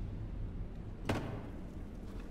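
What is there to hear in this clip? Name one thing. A wooden chest lid thumps shut.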